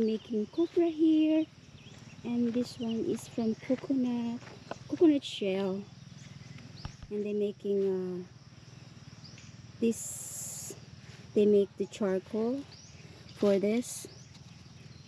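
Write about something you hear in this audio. A woman talks close by, calmly and with pauses.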